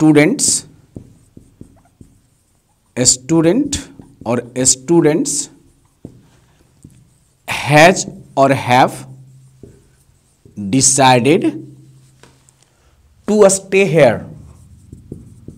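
A man speaks clearly and slowly in short phrases, close by, with pauses between them.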